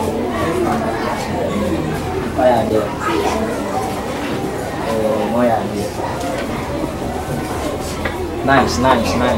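Several young children chatter and talk at once nearby.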